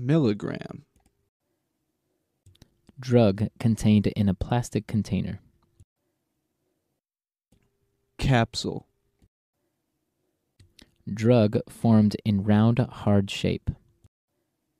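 A man speaks clearly into a microphone, in short phrases with pauses.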